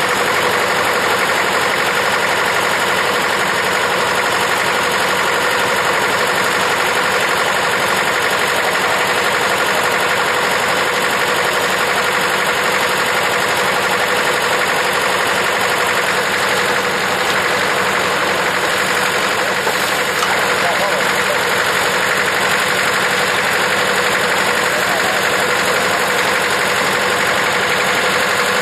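An old threshing machine rattles and clatters steadily.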